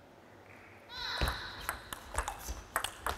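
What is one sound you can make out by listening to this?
A table tennis ball clicks back and forth in a quick rally.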